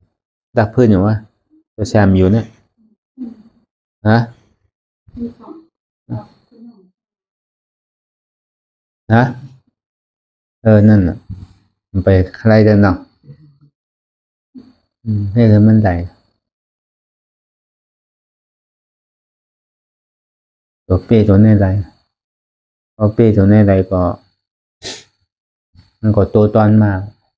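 A man speaks calmly and slowly, close to a microphone, with long pauses.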